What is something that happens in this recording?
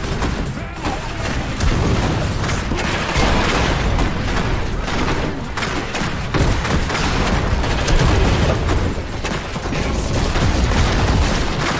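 Energy beams zap and crackle in rapid bursts.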